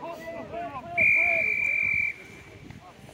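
A referee's whistle blows one long blast.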